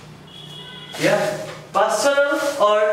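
A young man speaks loudly and clearly, close by.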